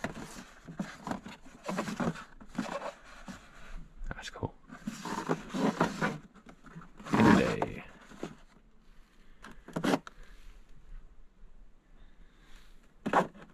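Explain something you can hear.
Plastic packaging rustles and crinkles as a hand brushes and handles boxes.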